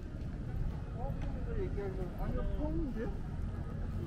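A man talks on a phone nearby as he passes.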